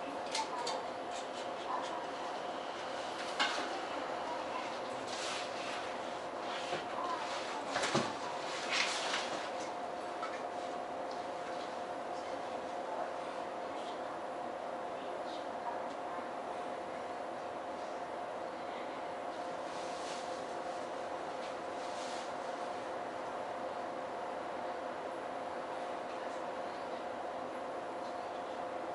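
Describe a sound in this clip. A stopped train's electric equipment hums steadily.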